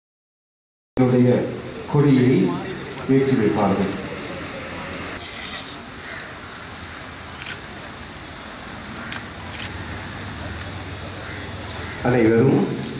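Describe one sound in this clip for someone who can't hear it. A group of men sing together outdoors.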